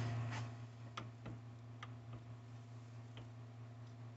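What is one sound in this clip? Metal rollers click and clunk.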